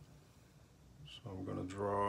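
A pencil scratches lightly along paper.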